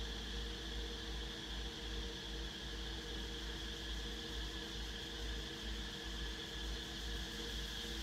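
An electric fan whirs steadily close by.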